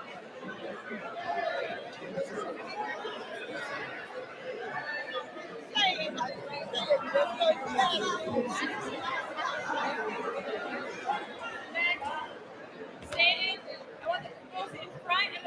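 A large crowd chatters loudly in a big echoing hall.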